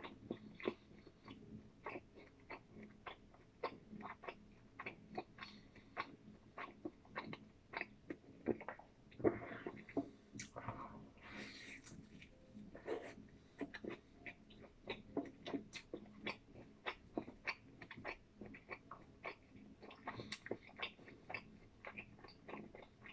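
A man chews food with his mouth open, smacking wetly.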